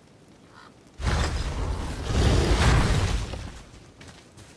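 Heavy wooden doors grind and rumble open.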